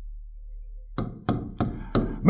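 A marker squeaks and taps on a board.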